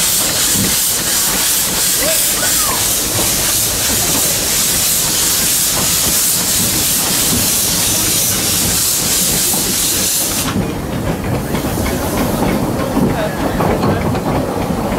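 A steam train rumbles and clanks slowly along the track.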